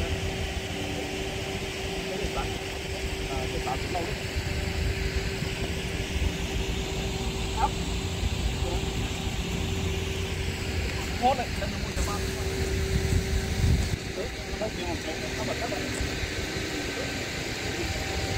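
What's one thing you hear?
Wind rumbles into a microphone outdoors.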